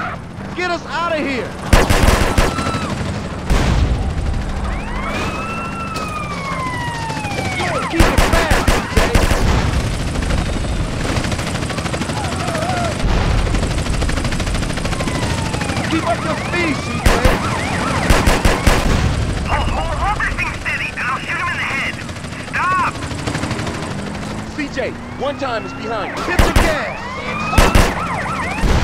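Police sirens wail and glide up and down.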